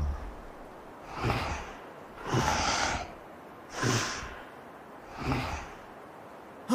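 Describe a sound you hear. A large tiger breathes heavily and growls in slow, deep bursts.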